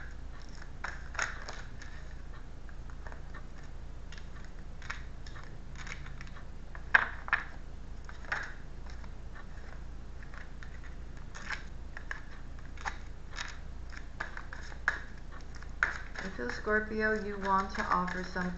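Playing cards shuffle and slap together in quick bursts.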